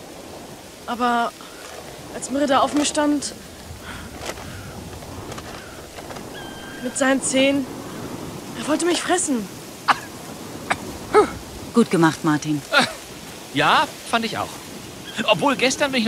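Geese honk loudly in short, repeated calls.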